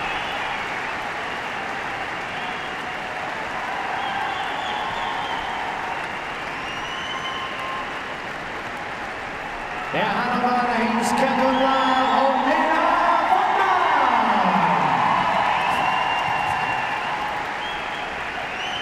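A large crowd murmurs in an echoing hall.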